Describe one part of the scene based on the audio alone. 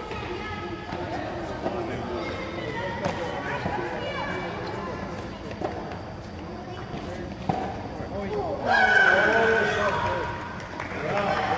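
A tennis ball is hit with a racket with sharp pops that echo in a large hall.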